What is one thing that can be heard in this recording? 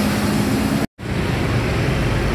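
A bus drives slowly over a rough yard.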